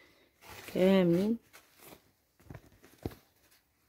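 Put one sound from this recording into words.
Silky fabric rustles softly as a hand handles it.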